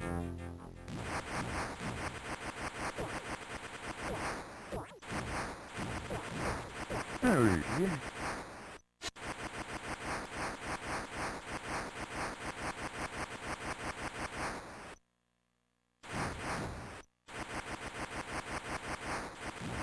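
Rapid electronic zapping sounds fire over and over as a game character shoots.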